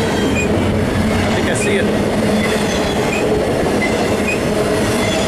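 Steel wheels squeal faintly on the rails.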